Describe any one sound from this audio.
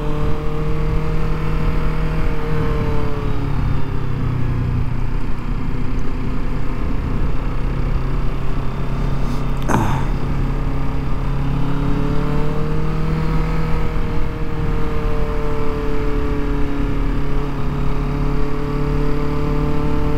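A motorcycle engine hums steadily close by, its pitch rising and falling with the throttle.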